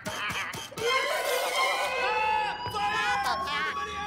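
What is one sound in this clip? A cartoon rabbit screams wildly up close.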